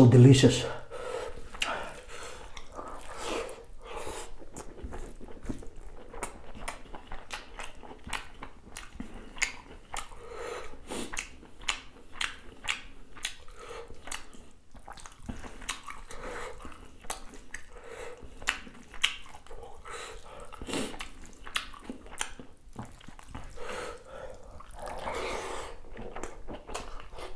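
A man hums with pleasure through a full mouth.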